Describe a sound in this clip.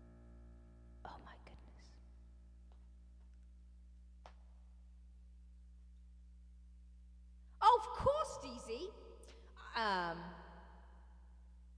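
A woman talks into a microphone with animation.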